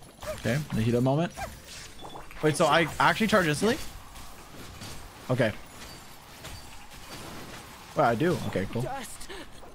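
Game battle effects whoosh and crackle.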